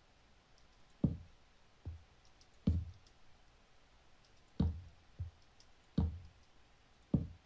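Blocks are set down with short, dull thuds, one after another.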